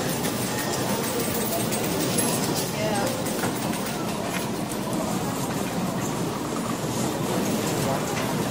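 Slot machines chime and jingle.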